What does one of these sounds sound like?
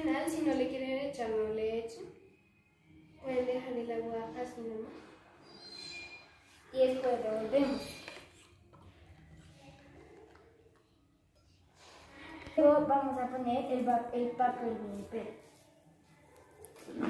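A young girl talks close by, explaining with animation.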